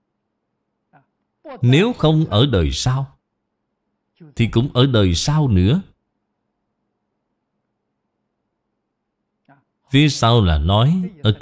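An elderly man speaks calmly and slowly into a close microphone, pausing between phrases.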